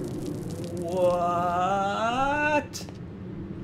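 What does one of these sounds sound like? A man speaks in a low, drawn-out voice close by.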